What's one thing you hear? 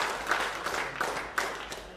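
Footsteps thud across a wooden stage in a large hall.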